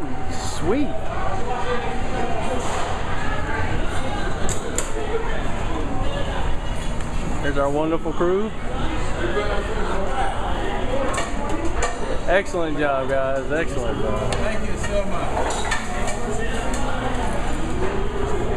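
A crowd of people chatters steadily in a busy room.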